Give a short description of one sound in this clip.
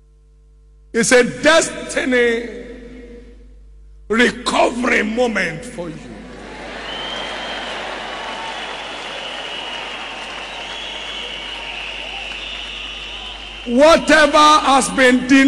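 A man preaches loudly and with passion in a large echoing hall.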